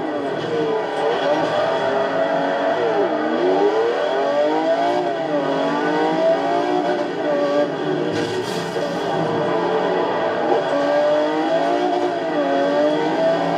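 A racing car engine roars and revs up and down as gears shift.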